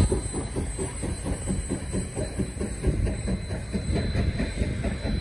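A steam locomotive chugs with rapid, heavy exhaust beats.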